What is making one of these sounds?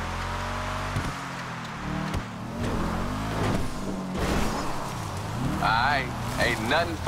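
A car's suspension thuds over bumps.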